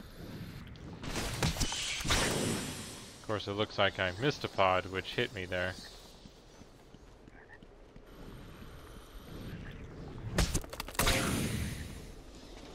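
A large plant creature lunges and snaps with a heavy thud.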